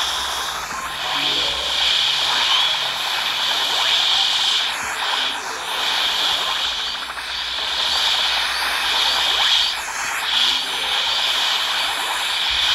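Small shots pop rapidly.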